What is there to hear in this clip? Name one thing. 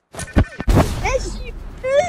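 A pickaxe swings and strikes with sharp metallic hits.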